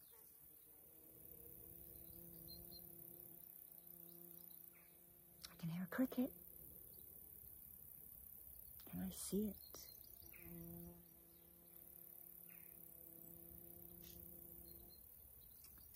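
A middle-aged woman hums a long, steady note close by.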